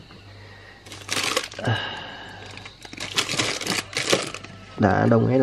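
Plastic packets crinkle and rustle as a hand moves them.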